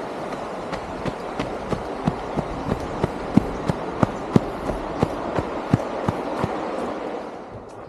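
Quick footsteps run on a dry dirt path.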